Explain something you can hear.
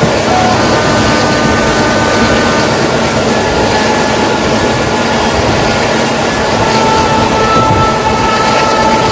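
A train rumbles and clatters steadily along the rails.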